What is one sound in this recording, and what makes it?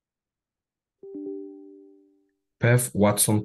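A computer alert chime sounds once.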